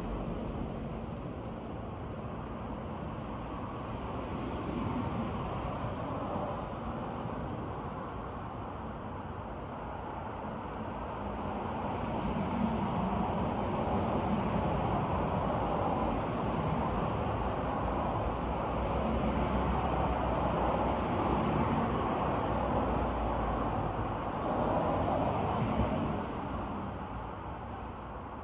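Wind blows through trees outdoors, rising and falling in gusts.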